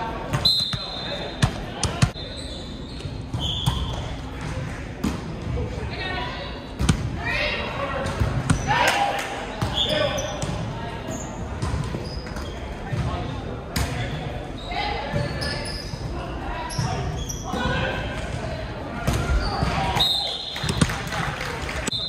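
A volleyball is struck with sharp slaps that echo through a large hall.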